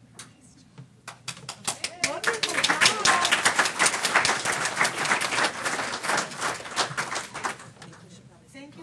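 A crowd claps and applauds loudly in a room.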